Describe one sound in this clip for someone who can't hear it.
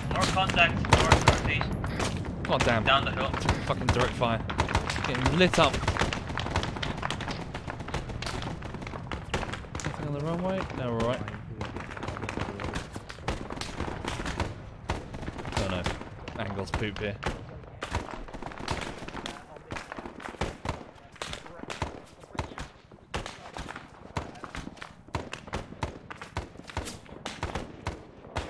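Rifle shots crack repeatedly in sharp bursts.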